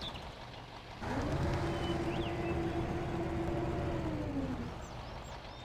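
A crane arm whines steadily as it swings and lifts.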